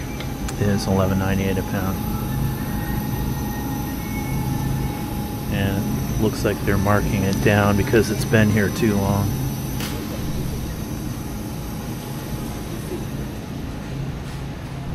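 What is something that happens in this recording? A refrigerated display case hums steadily.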